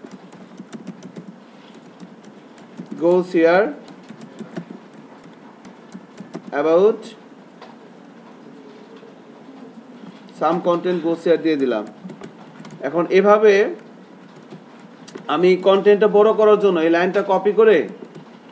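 A computer keyboard clicks softly as someone types.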